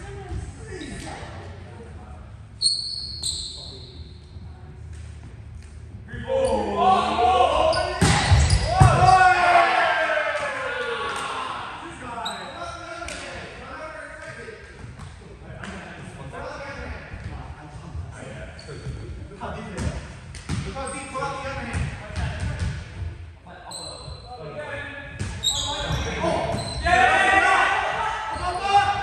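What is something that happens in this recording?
A volleyball thumps off players' arms and hands in a large echoing hall.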